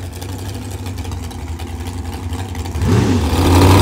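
A drag racing car's engine idles with a loud, lumpy rumble.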